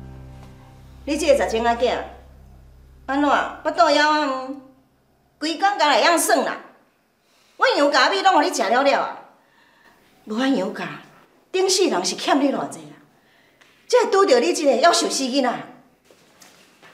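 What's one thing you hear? An elderly woman scolds sharply and with animation, close by.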